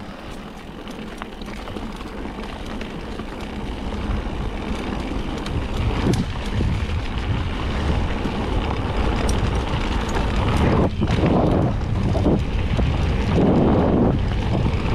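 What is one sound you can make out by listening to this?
Wind buffets against the microphone, growing stronger.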